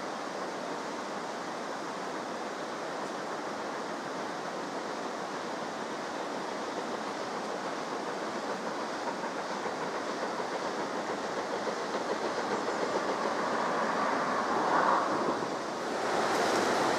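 A steam locomotive chuffs steadily as it approaches, growing louder.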